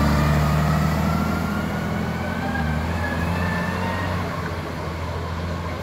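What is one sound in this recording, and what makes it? A bus engine revs higher as the bus drives off and fades.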